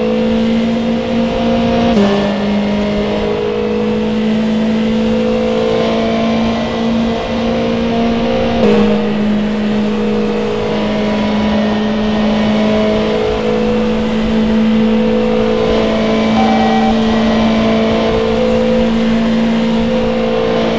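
A racing car engine roars at high revs, dropping in pitch at each gear change.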